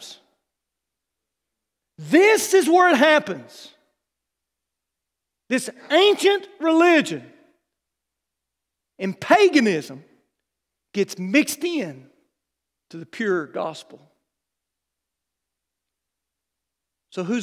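A man speaks with animation through a microphone, in short phrases with pauses.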